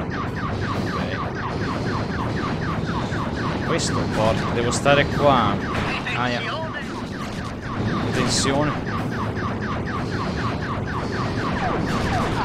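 Rapid laser gunfire pulses steadily.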